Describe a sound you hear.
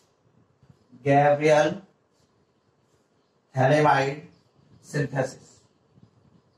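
A man speaks calmly in short phrases nearby.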